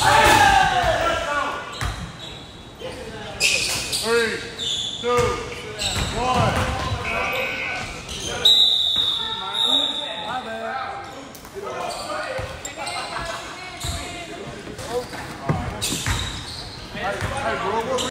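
Young men shout and talk nearby, echoing in a large hall.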